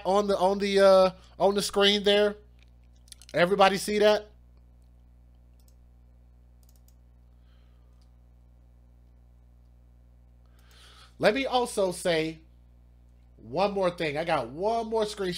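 A man speaks with animation into a close microphone, pausing between phrases.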